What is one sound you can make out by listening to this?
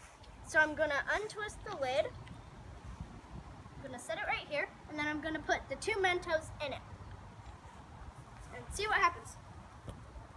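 A young girl speaks with animation close by.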